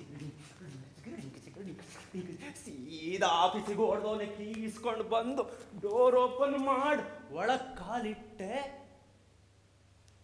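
Bare feet thump and slide on a wooden floor.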